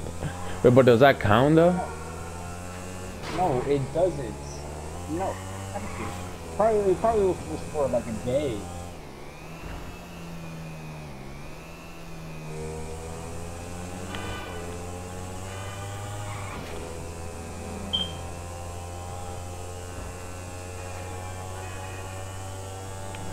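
A motorcycle engine hums steadily and rises and falls in pitch as it speeds up and slows down.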